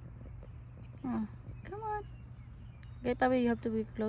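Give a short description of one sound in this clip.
A young girl speaks softly to an animal.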